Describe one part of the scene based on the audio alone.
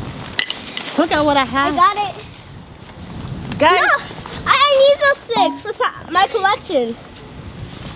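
A young child shouts excitedly nearby.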